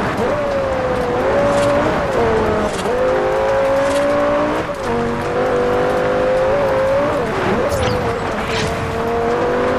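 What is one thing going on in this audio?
A sports car engine roars loudly, its pitch rising and falling as the car shifts gears.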